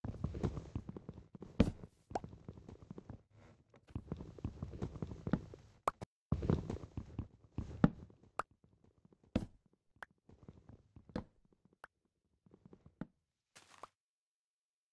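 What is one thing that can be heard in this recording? Wooden blocks knock and crack as they are chopped, then break apart.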